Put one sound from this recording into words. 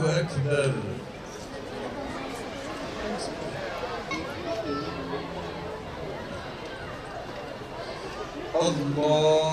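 A large crowd murmurs softly in the open air.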